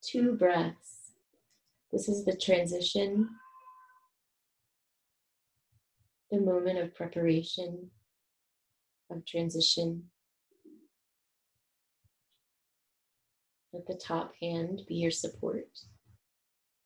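A woman speaks calmly and softly close to a microphone, in short phrases with pauses.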